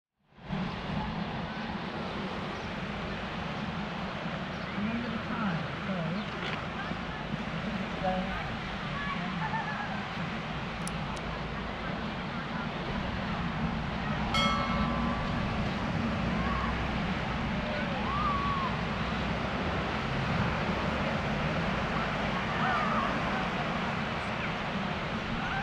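Small waves wash onto a shingle beach.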